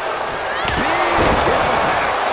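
A body thuds heavily onto a wrestling ring mat.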